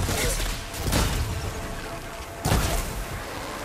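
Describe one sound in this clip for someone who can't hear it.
Arrows thud into a target with sharp impacts.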